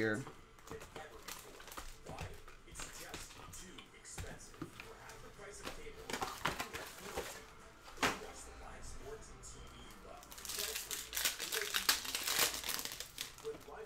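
Foil card packs rustle and click as hands handle them.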